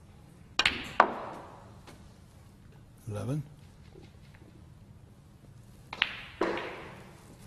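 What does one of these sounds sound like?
Snooker balls click against each other.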